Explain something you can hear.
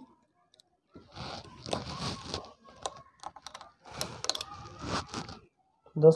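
Metal engine parts clink and scrape under a hand tool.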